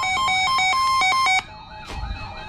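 A weather radio blares harsh, rapid electronic data bursts.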